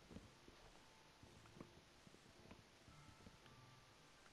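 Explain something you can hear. Blocks of earth crunch as they are dug out.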